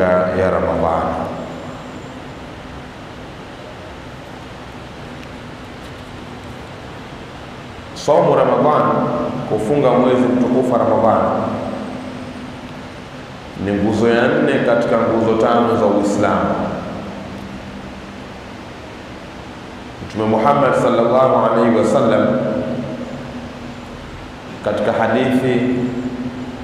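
A man speaks into a microphone in phrases with long pauses.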